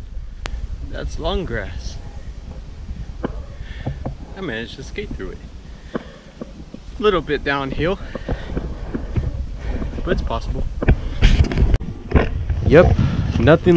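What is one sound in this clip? A young man talks with animation, close up.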